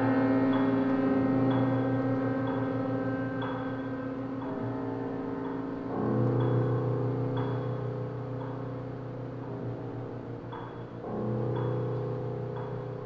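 A string quartet plays a slow piece in a reverberant hall.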